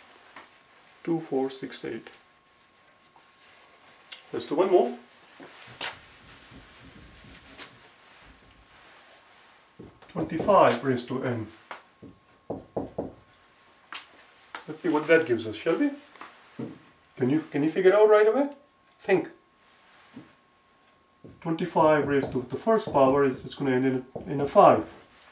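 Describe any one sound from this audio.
A man speaks calmly and explains, close by.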